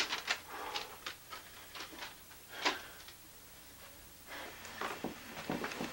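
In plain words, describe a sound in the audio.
Paper rustles and crinkles close by.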